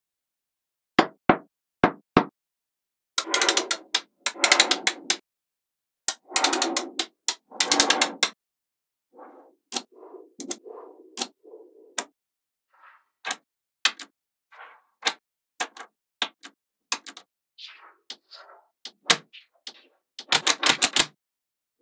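Small metal magnet balls click and snap together sharply.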